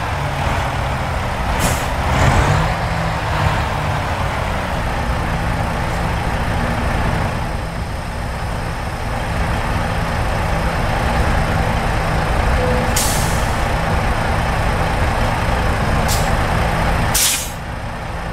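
A truck engine idles with a low, steady rumble, then stops.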